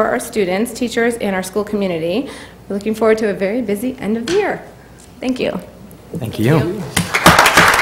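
A young woman speaks warmly into a microphone.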